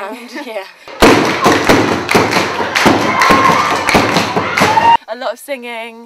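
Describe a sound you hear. Hands clap in rhythm along with singing.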